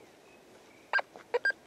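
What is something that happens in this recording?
A metal detector beeps in short high tones.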